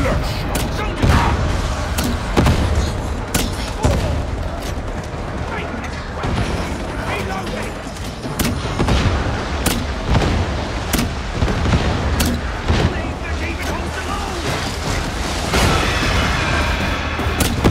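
Guns fire in sharp, repeated bursts of shots.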